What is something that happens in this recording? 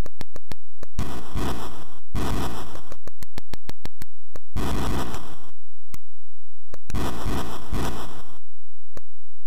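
Falling boulders land with loud bursts of harsh electronic noise.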